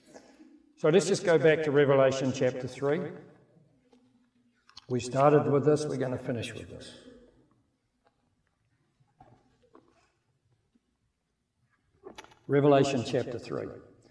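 A middle-aged man speaks calmly through a microphone, with pauses.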